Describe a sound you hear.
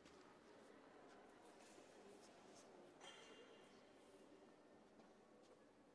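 Footsteps shuffle across a hard floor in a large echoing hall.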